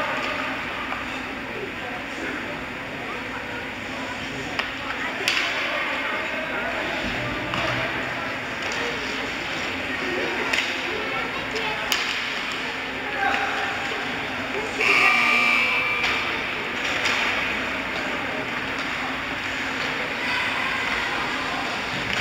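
A crowd murmurs in a large echoing rink.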